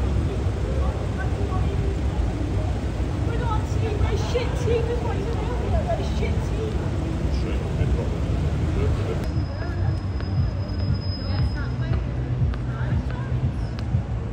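Young people chatter nearby outdoors.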